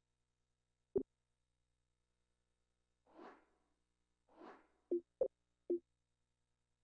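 Short electronic menu blips sound now and then.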